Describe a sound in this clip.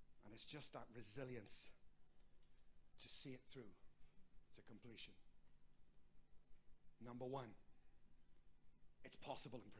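A middle-aged man speaks calmly into a microphone in bursts with pauses, in a slightly echoing room.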